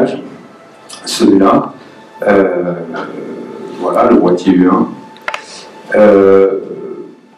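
A man speaks calmly into a microphone, heard through a loudspeaker in a reverberant room.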